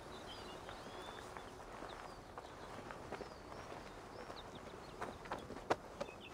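Footsteps thud quickly on grass and dirt.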